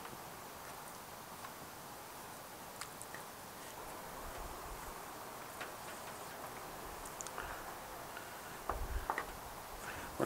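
Raw pork ribs are flipped over on a wooden board.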